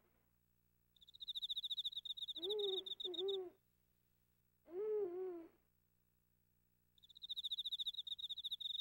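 Rapid high electronic beeps tick as text is typed out.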